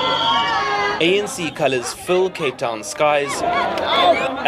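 A crowd of men and women sings and chants loudly nearby.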